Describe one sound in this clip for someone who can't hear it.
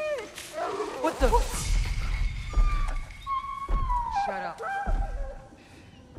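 A boy speaks in a hushed, startled voice.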